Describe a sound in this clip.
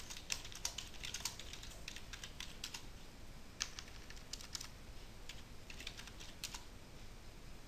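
Keys click quickly on a keyboard as someone types.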